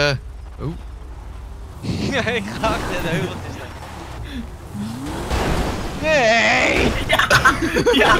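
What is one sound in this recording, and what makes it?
A car engine revs as a car drives over rough ground.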